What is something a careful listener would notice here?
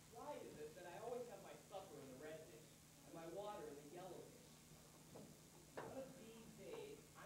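A man speaks expressively, heard from a distance in a hall.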